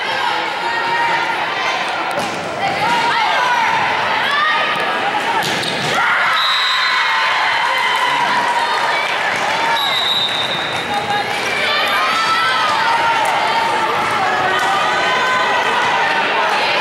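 Young women players and spectators shout and cheer.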